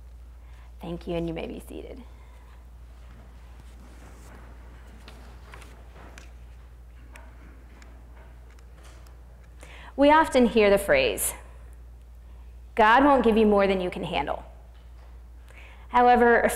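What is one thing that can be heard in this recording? A young woman speaks calmly through a microphone in an echoing hall.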